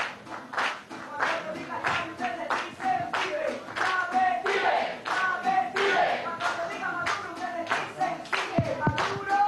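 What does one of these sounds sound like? A small guitar strums a quick rhythm.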